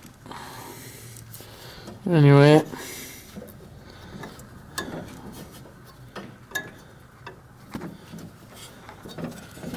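A hand knocks and rubs against a metal part close by.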